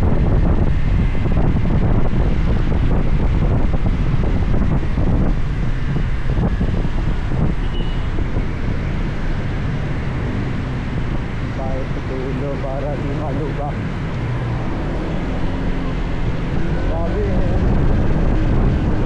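Wind rushes loudly past a motorcycle rider.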